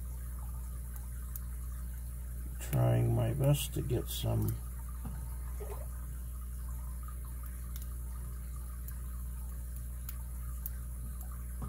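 Metal lock picks scrape and click faintly inside a padlock.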